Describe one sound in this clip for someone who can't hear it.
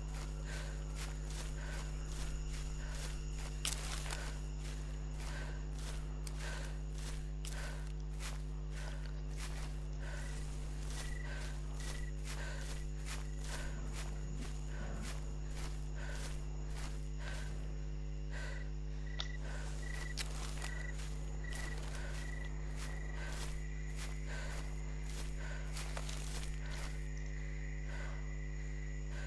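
Footsteps tramp steadily through grass.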